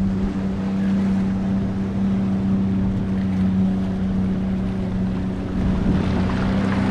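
Waves wash and splash against rocks.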